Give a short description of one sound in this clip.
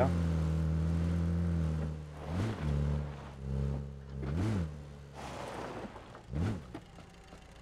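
An engine rumbles and revs as a vehicle drives.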